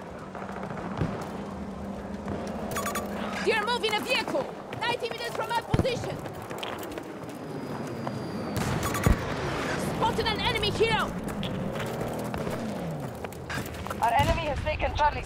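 Gunshots crack now and then.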